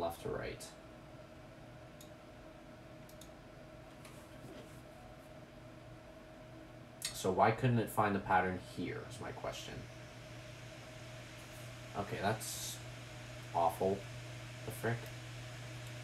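A computer mouse clicks now and then.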